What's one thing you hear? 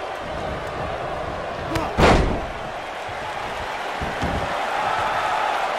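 A large crowd cheers steadily in an arena.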